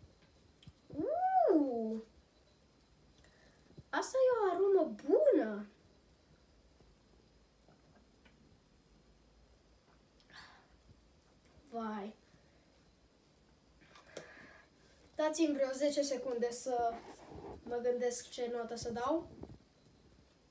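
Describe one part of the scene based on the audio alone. A young boy speaks close by with animation, in short bursts.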